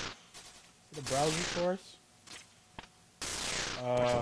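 A retro video game weapon charges with a rising, warbling tone.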